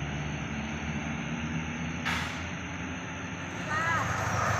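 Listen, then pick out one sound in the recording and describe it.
A large truck engine idles with a low rumble.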